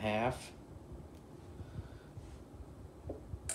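A plastic jar clunks softly as it is handled.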